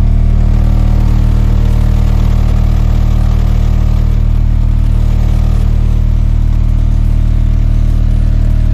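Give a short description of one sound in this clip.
A loud, deep bass tone drones steadily from a car audio system.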